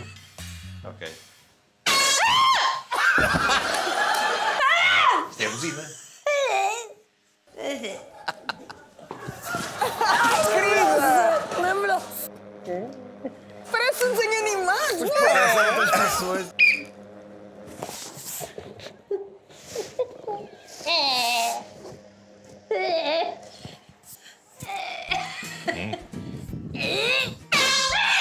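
A young woman shouts and laughs with excitement close by.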